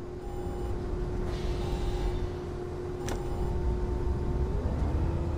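A diesel city bus engine hums as the bus drives along.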